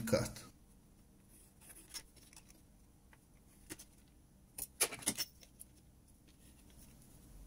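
A metal ruler taps and scrapes against a plastic casing.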